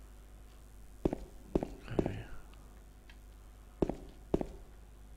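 Footsteps thud slowly on a hard floor.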